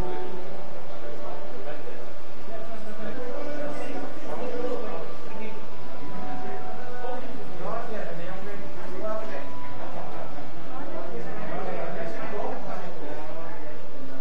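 Several adults murmur and talk quietly nearby.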